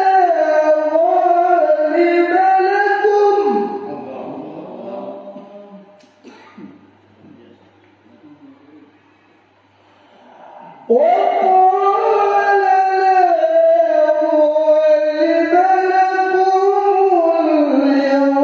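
A man chants a recitation in a long, melodic voice through a microphone, in an echoing hall.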